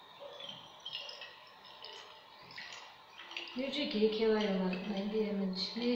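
Water pours into a glass flask.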